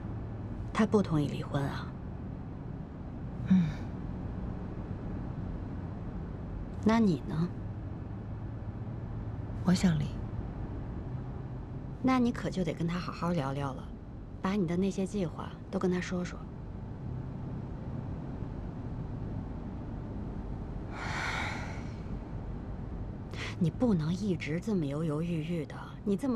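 A young woman speaks in short, tense exchanges at close range.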